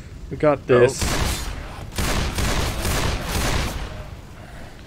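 A pistol fires several quick, sharp shots.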